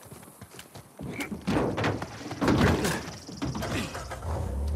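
A jeep engine starts and rumbles loudly.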